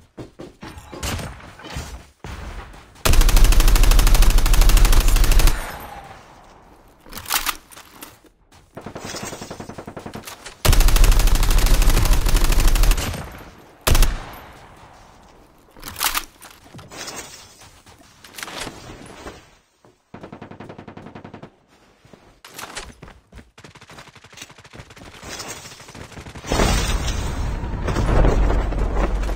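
Footsteps run over ground.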